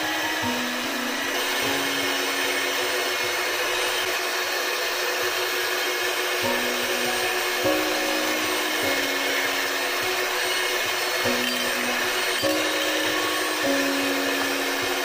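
An electric hand mixer whirs steadily as it beats batter in a bowl.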